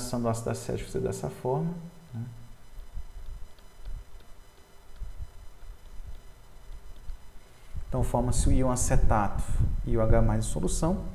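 A man lectures calmly through a close microphone.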